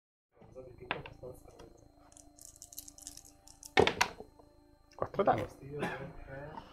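Dice clatter and roll across a hard tray.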